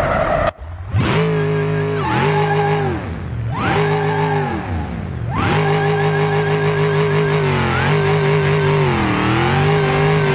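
A car engine roars and revs up and down repeatedly.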